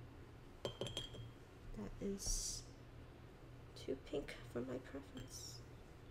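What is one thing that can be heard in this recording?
A paintbrush swishes in a water jar.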